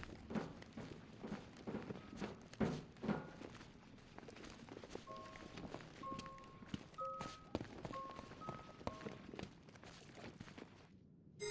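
Heavy footsteps thud and scrape on a hard floor.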